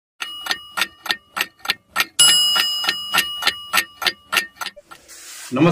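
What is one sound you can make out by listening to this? A clock ticks loudly and steadily.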